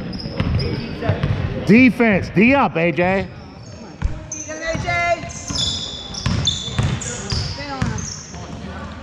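Sneakers squeak sharply on a wooden court in an echoing gym.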